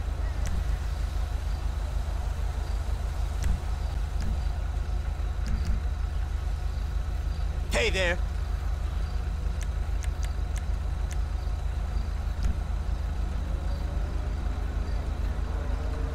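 Car engines idle nearby with a low steady hum.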